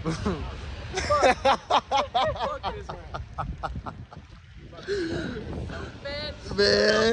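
A young man laughs loudly and excitedly close to the microphone.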